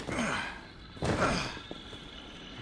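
A body lands heavily on the ground.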